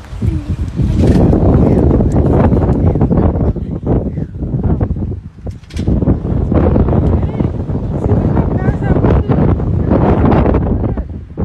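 Strong wind gusts roar across the microphone.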